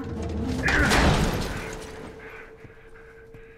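A metal gate scrapes and creaks as it swings open.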